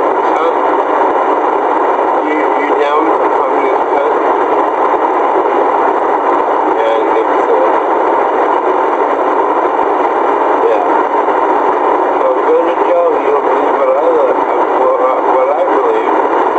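Road noise drones steadily inside a moving vehicle.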